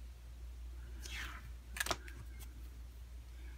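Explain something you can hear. A pen cap clicks onto a pen.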